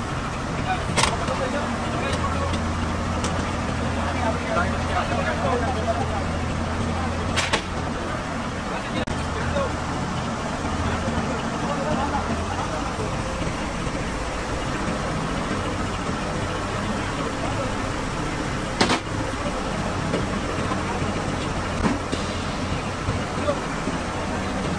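Metal chains clink and knock sharply against a heavy load.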